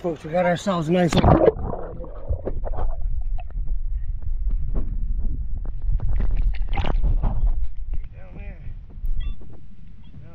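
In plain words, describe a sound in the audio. Water rumbles and gurgles underwater.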